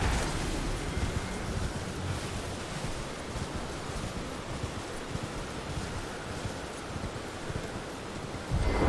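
Horse hooves thud at a gallop.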